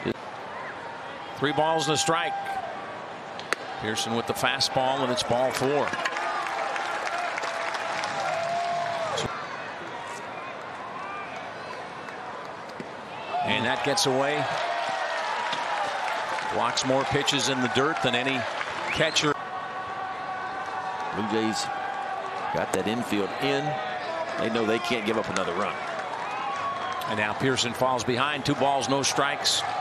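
A stadium crowd murmurs in the background.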